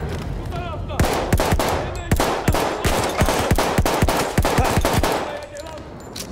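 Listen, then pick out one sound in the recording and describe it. A rifle fires rapid shots, close by.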